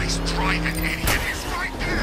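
A car crashes into another car with a metallic bang.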